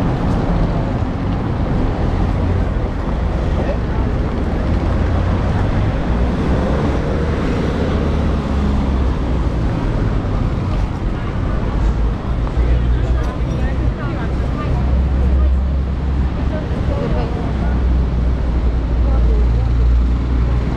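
A crowd of passers-by chatters in the distance.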